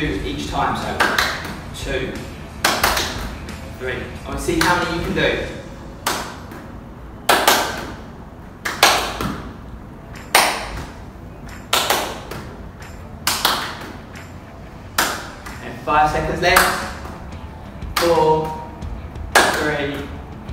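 A man claps his hands sharply.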